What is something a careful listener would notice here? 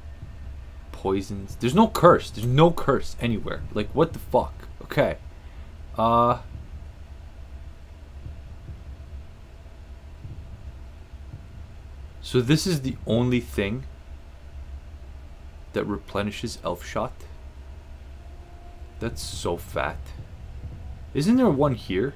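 A man talks calmly and casually into a close microphone, in short bursts with pauses.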